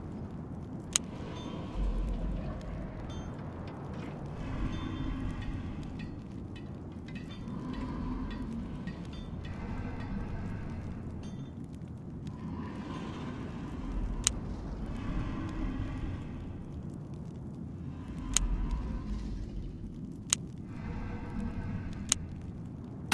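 Short electronic clicks sound as menu buttons are tapped.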